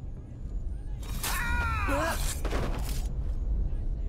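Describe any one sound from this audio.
A body thumps onto a wooden floor.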